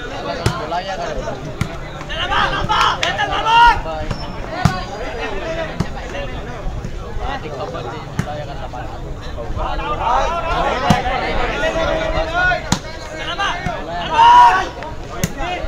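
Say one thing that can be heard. A ball is struck with sharp thumps.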